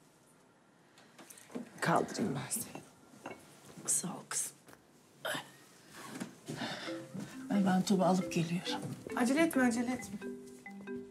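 An elderly woman speaks quietly.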